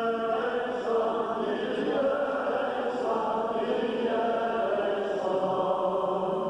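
A man chants in a steady, sustained voice through a microphone.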